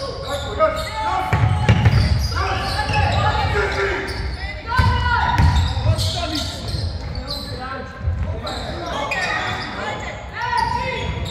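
Young women players call out to each other.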